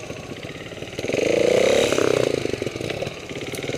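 A second motorbike engine revs loudly nearby, then settles.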